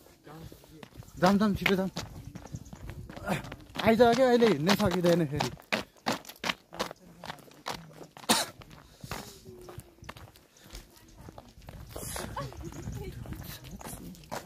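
Footsteps scuff on a rough paved path.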